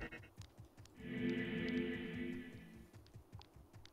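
A magic spell bursts with a bright humming whoosh.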